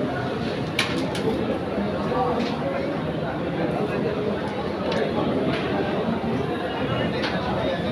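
Wooden carrom pieces click sharply against each other on a board.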